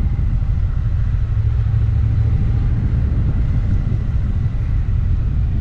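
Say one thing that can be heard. A motorbike engine rumbles steadily while riding.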